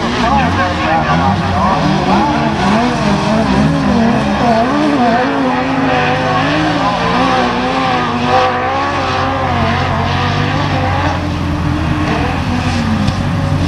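A racing buggy engine revs and whines as it speeds around a dirt track.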